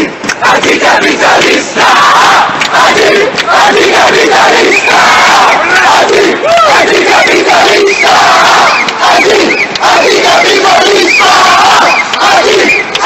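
A large crowd chants loudly and rhythmically close by.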